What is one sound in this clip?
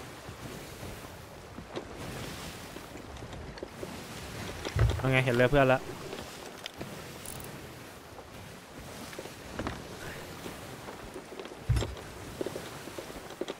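Ocean waves surge and splash against a wooden ship.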